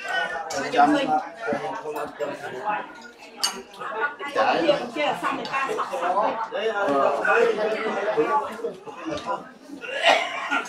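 A crowd of men and women chat around the room.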